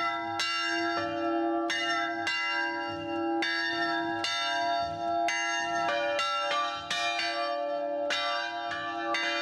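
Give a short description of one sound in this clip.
Two church bells ring steadily, their strokes overlapping and ringing on.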